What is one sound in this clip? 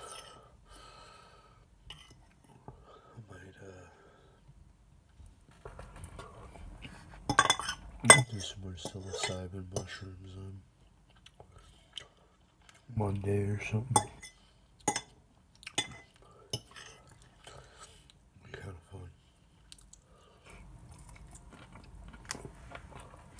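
A fork scrapes and clicks against a plate.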